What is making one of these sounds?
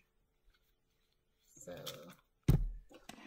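Paper rustles as a notebook page is lifted and moved.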